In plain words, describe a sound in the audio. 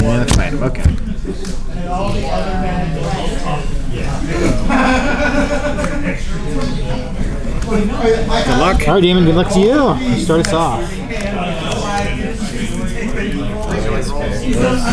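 Sleeved playing cards are placed and slid on a cloth playmat.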